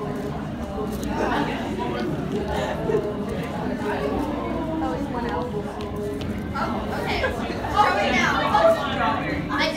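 A young woman speaks with animation in a large, echoing room.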